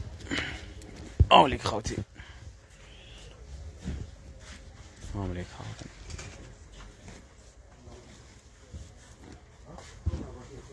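Clothes rustle and swish as they are moved about.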